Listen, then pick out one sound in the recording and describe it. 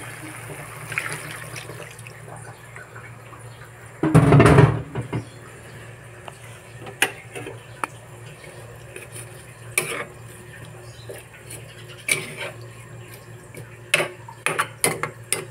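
Broth simmers in a wok.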